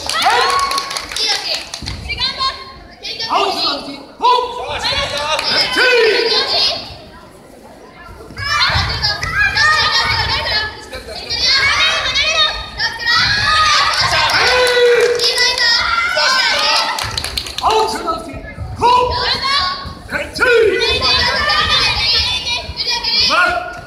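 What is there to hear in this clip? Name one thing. Children shout and cheer loudly in a large echoing hall.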